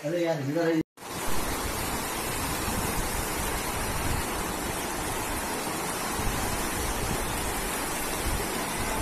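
Floodwater rushes loudly down a street.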